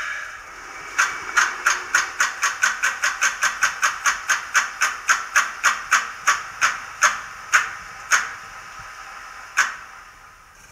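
A model locomotive's small speaker plays a diesel engine starting with a fast rhythmic knocking that slows down.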